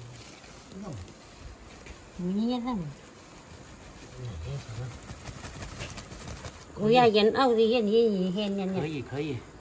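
Dried flower buds pour and rustle out of a plastic sack.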